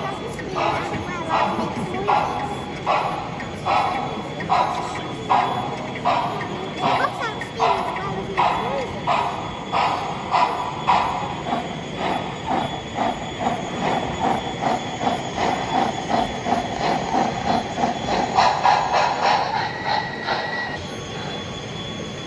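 Wheels rumble softly on rails.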